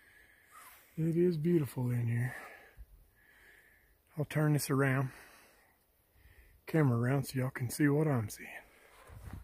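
An older man speaks calmly and close by, in short phrases with pauses.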